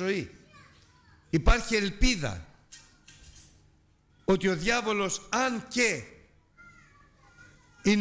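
A middle-aged man preaches with emphatic, measured phrases through a microphone in a reverberant room.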